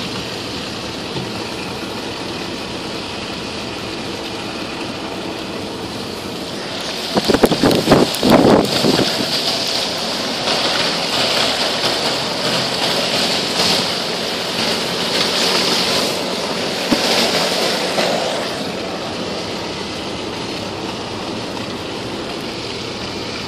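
A car drives slowly through snow.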